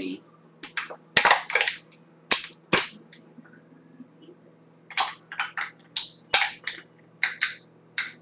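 A small object taps and clicks in a man's hands.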